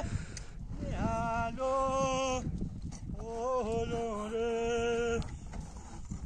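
A young man sings out long drawn notes nearby.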